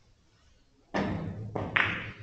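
A cue strikes a billiard ball with a sharp clack.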